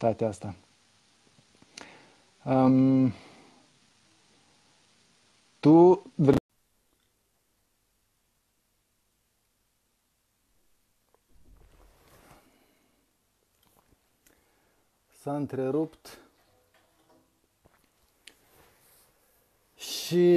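A young man talks into a headset microphone in short bursts, with pauses.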